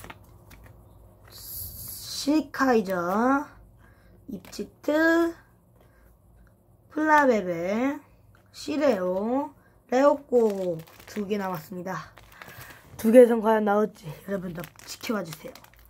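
Trading cards slide and flick against each other.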